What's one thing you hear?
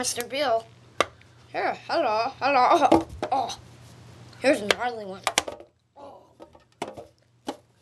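Plastic toys clatter on a wooden ramp.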